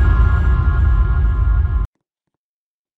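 Loud electronic dance music thumps with a heavy bass beat, then cuts off abruptly.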